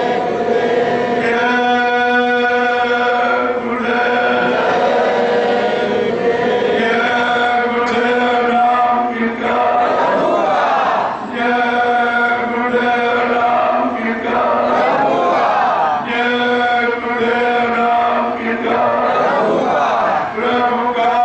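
A man sings slow, long held notes into a microphone, heard through loudspeakers.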